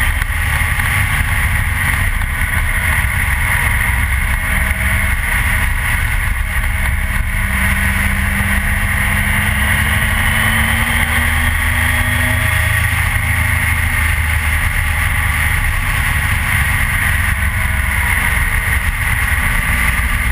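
A motorcycle engine drones steadily up close, rising and falling in pitch.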